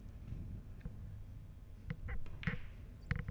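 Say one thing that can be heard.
A cue strikes a ball with a short tap.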